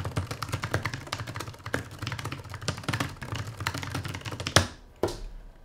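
Keys clatter rapidly on a keyboard.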